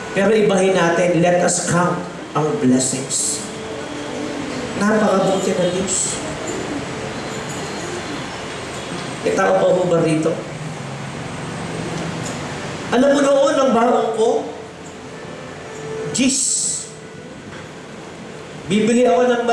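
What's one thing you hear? A man preaches with animation through a headset microphone, in a reverberant hall.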